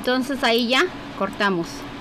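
Scissors snip a thread.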